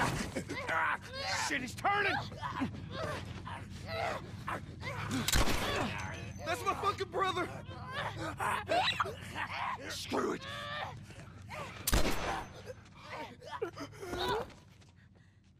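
A man shouts in panic close by.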